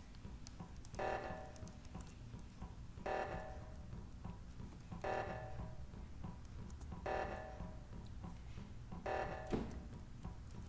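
An alarm blares in short repeated pulses, about every two seconds.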